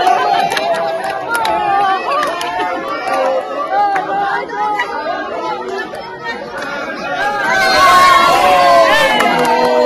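A crowd of men and women chatters and cheers excitedly outdoors.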